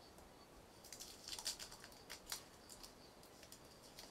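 Masking tape peels off with a sticky rasp.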